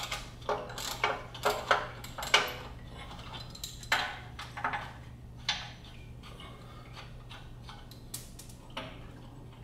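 A wrench clicks and clanks against metal bolts close by.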